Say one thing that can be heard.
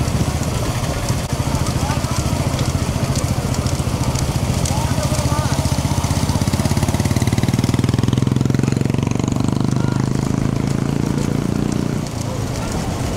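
Motorbike engines drone close behind.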